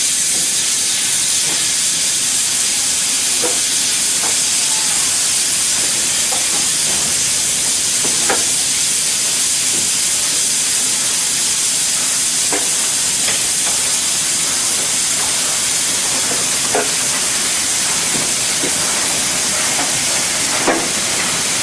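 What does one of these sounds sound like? Steam hisses loudly and steadily from a steam locomotive.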